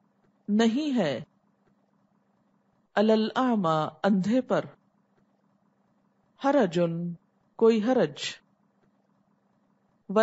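A woman speaks calmly and clearly into a close microphone, in short phrases with pauses.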